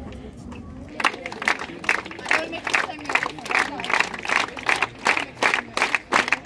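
A crowd of young women chants loudly.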